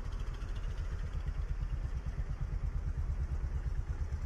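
A motorcycle engine hums as it passes close by.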